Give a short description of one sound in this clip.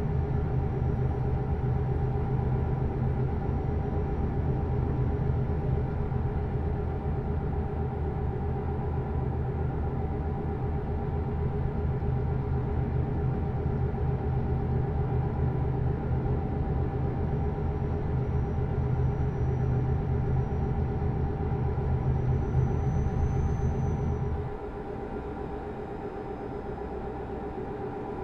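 A truck engine drones steadily while driving, then drops to a quieter hum.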